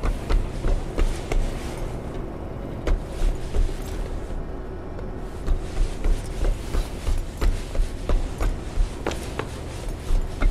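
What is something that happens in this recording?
Footsteps thud on a hard floor at a steady pace.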